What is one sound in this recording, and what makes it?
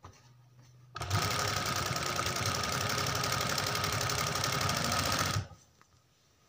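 An industrial sewing machine stitches through fabric at speed.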